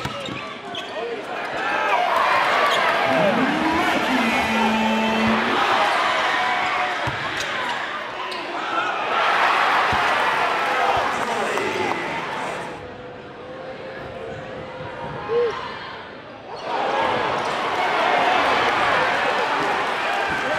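A large crowd cheers and roars in an echoing gym.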